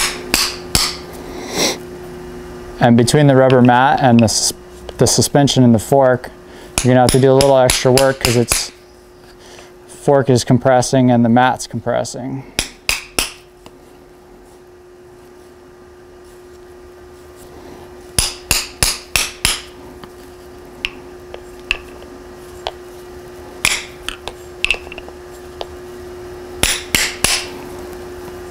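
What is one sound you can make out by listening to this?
A hand sharply taps a wooden dowel down onto metal, over and over.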